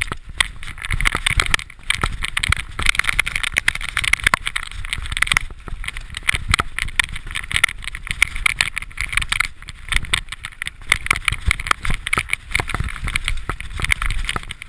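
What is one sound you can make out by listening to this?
Bicycle tyres roll and crunch over a bumpy dirt trail.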